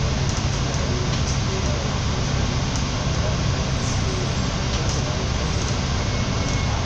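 A bus engine rumbles low and steady close by.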